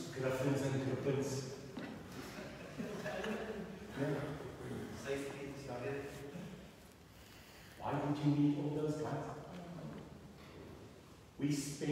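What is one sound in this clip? A middle-aged man speaks calmly and at length, close by.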